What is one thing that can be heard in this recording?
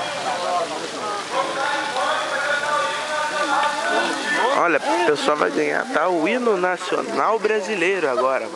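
A large crowd sings a cappella outdoors.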